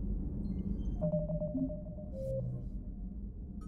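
Electronic menu tones beep briefly.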